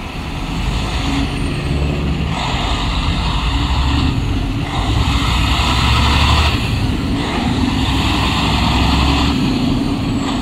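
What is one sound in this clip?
Car tyres hiss and crunch over snowy slush.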